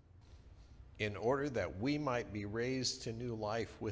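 A middle-aged man reads aloud calmly through a microphone.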